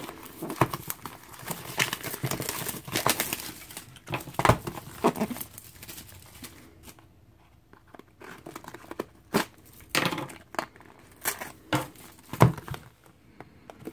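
Plastic wrap crinkles and tears.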